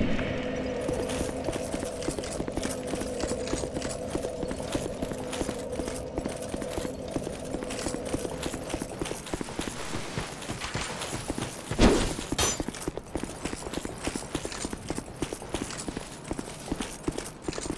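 Armoured footsteps crunch steadily over stone and dry leaves.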